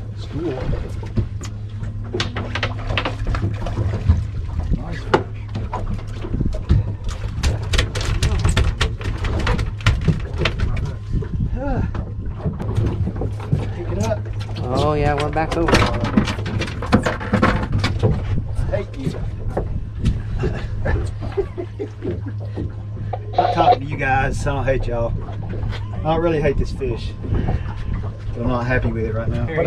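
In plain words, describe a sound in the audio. A boat engine idles with a steady low hum.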